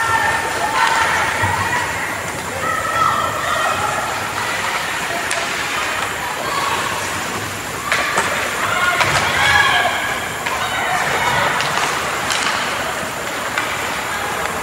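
Spectators talk nearby.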